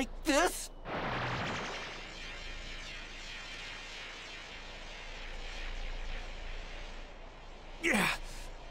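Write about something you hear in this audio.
A glowing ball of energy hums and rushes as it gathers in a hand.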